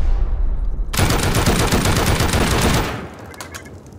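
Metal sparks hiss and crackle from a burning charge.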